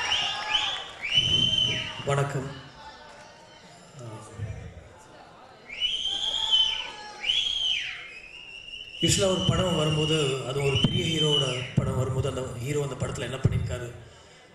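A man speaks into a microphone over loudspeakers, in a large echoing hall.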